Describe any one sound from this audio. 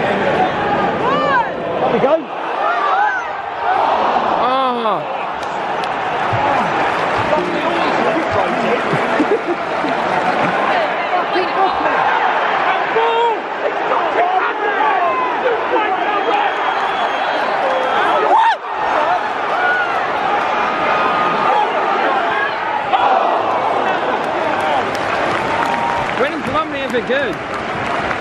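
A large stadium crowd chants and sings loudly all around.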